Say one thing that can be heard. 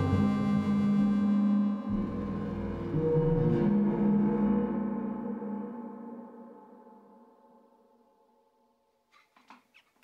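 A synthesizer plays a rich, droning chord that slowly fades away.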